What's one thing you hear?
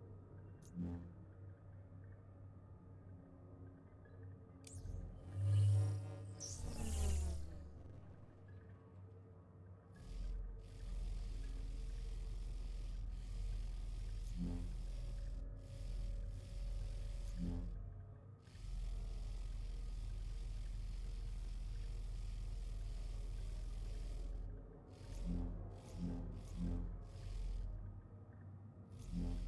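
Soft electronic menu blips sound now and then.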